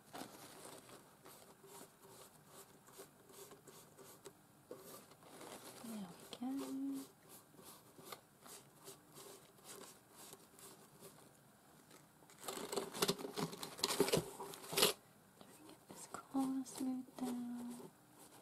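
Paper crinkles and rustles as it is folded and pressed.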